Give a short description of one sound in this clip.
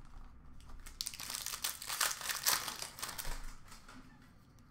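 Plastic card wrappers rustle in a hand.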